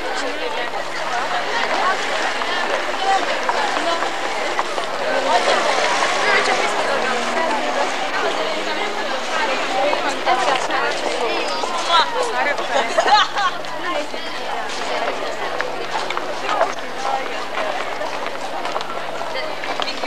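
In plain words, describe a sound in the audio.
A crowd of girls chatters.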